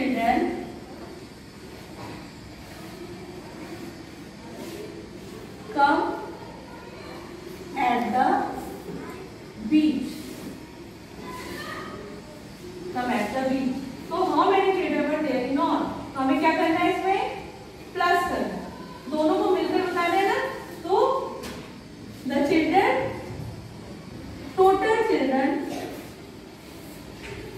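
A woman speaks clearly and slowly to a class in an echoing room.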